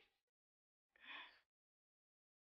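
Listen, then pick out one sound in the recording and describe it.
A young woman sobs close by.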